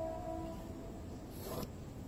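A pencil scratches along a ruler on paper.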